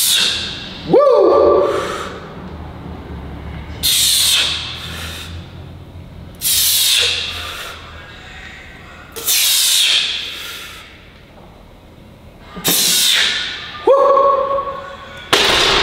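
Weight plates on a barbell clank and ring briefly.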